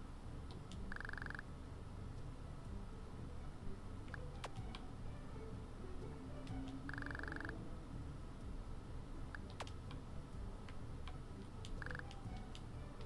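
A short electronic tone beeps from a game.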